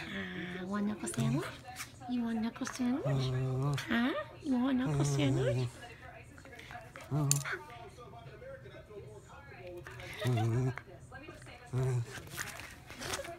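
A small dog growls and grumbles playfully in bursts.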